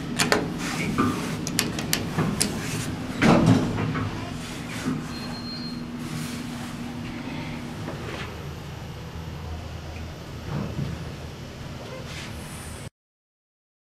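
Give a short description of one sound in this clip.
An elevator motor hums steadily while the car moves.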